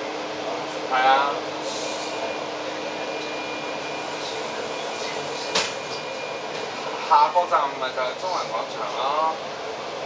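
Traffic hums steadily on a city street, heard from inside a moving vehicle.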